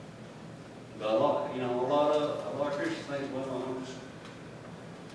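A middle-aged man speaks calmly through a microphone in an echoing room.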